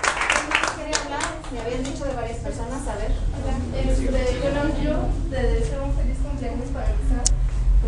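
A group of women and men sing together nearby.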